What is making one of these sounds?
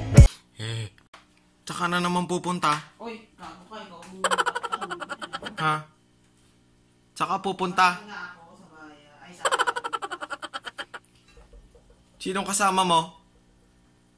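A young man talks close up, with animation and bursts of laughter.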